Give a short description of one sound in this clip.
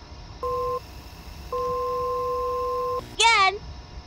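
An emergency alert tone beeps loudly in long steady blasts.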